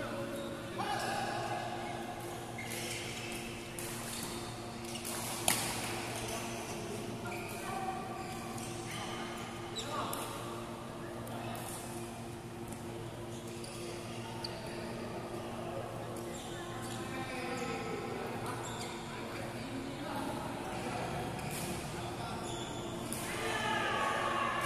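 Men call out and talk across the courts.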